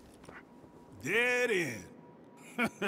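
A man grunts with effort.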